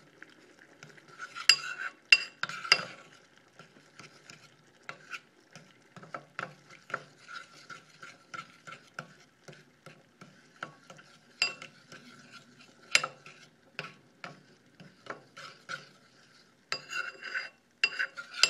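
A metal spoon stirs a liquid and clinks against a ceramic bowl.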